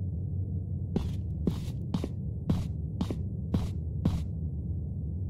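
Keypad buttons click in quick succession.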